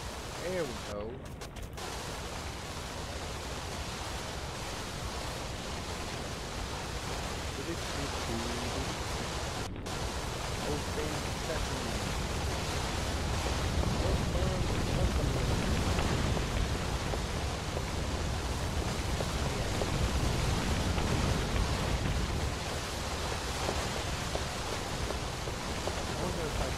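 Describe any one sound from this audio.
A young man talks casually into a nearby microphone.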